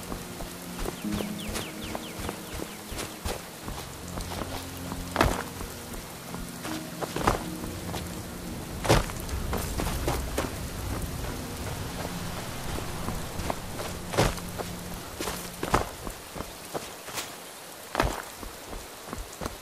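Footsteps crunch over rock and snow.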